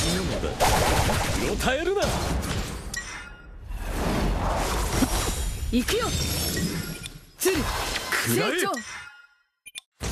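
Game sound effects chime and boom as attacks land.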